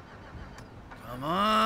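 A car engine starts and revs up.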